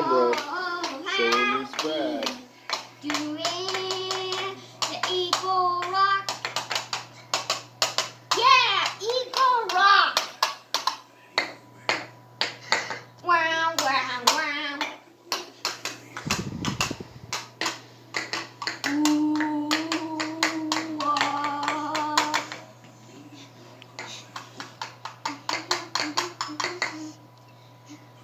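Plastic toys click and clatter on a table.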